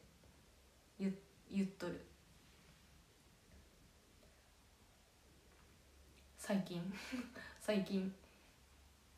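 A young woman speaks softly and briefly into a nearby microphone.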